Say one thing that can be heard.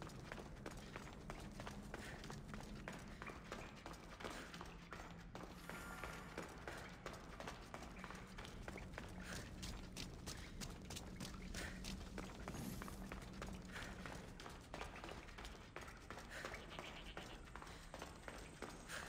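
Footsteps crunch quickly on gravel and stone.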